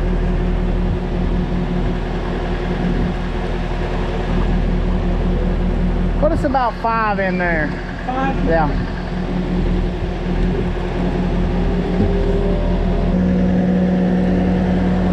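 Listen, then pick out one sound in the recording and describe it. An engine hums steadily close by.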